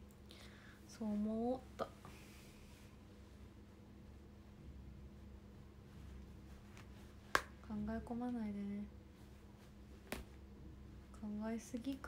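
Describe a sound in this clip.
A young woman speaks softly and close up, in short phrases.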